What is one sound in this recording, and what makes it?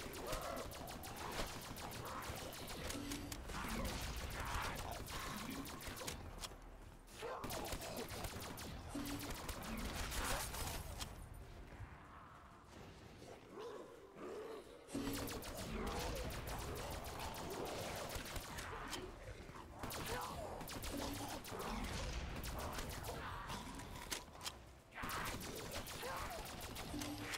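A rapid-fire gun shoots in bursts.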